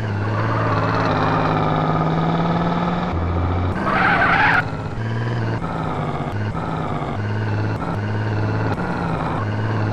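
A car engine hums steadily as it drives, its pitch shifting with speed.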